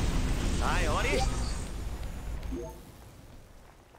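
A magic blast booms and rumbles loudly.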